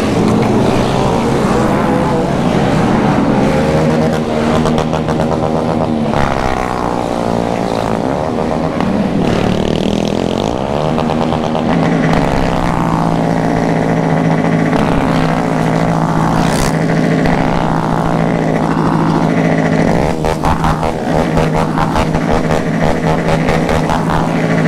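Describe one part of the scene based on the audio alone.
Other motorcycles rumble along nearby.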